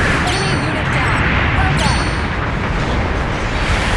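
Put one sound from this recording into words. Explosions boom and crackle loudly.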